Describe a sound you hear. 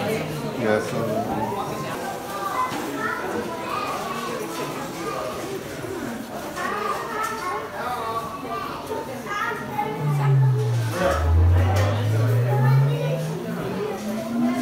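Adults chatter and talk in a busy room.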